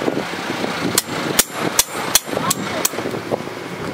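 A hammer strikes metal on an anvil with sharp, ringing clangs.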